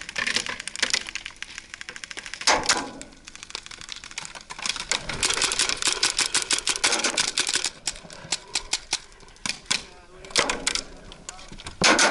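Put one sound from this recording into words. Paintballs splatter against a wire mesh barrier.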